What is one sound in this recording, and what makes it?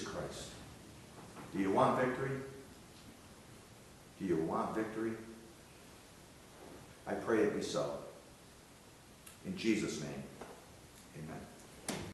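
An older man speaks slowly and calmly in short phrases, in a room with a slight echo.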